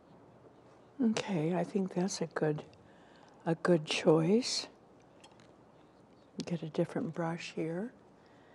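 An elderly woman speaks calmly into a nearby microphone.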